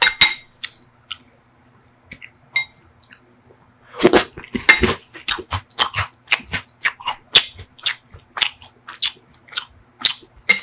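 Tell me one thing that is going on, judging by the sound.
A spoon scoops soft ice cream with sticky, squishy sounds.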